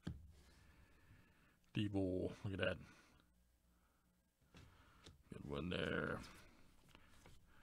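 Trading cards slide and rustle as they are shuffled by hand.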